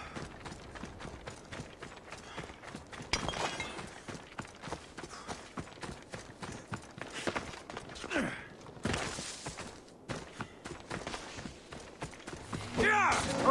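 Footsteps crunch quickly over gravel and grass.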